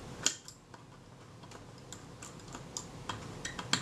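A metal screwdriver scrapes against a metal part.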